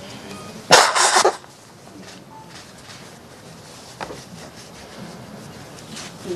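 An elderly man sobs and sniffles quietly, close by.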